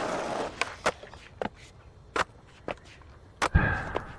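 A skateboard clatters as it lands.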